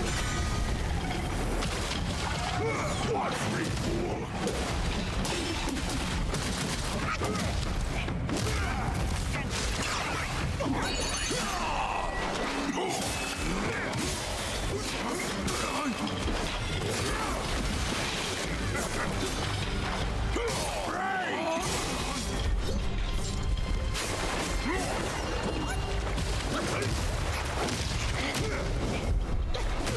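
A middle-aged man talks with animation into a microphone.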